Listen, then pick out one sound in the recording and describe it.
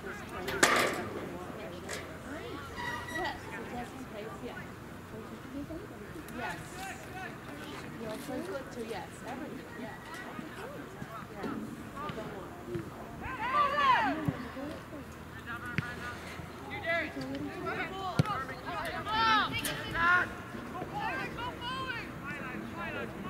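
Adult men and women on the sideline shout and call out encouragement outdoors.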